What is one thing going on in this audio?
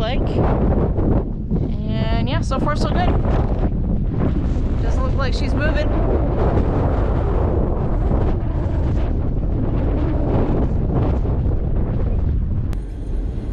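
A woman talks close to the microphone.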